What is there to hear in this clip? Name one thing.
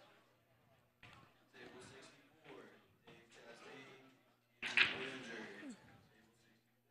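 Pool balls click and clack together as they are racked on a table.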